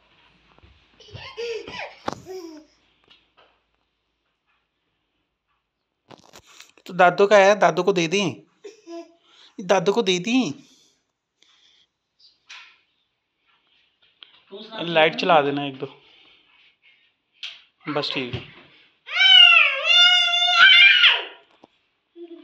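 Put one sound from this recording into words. A small child babbles and squeals close by.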